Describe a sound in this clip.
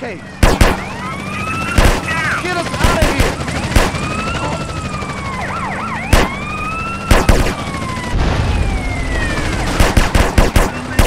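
A police siren wails up and down.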